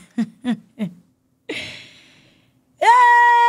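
A young woman laughs into a close microphone.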